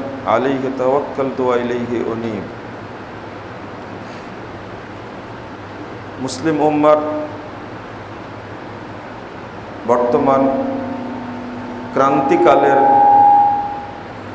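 A man speaks slowly and deliberately through a microphone, with long pauses, in a room with a slight echo.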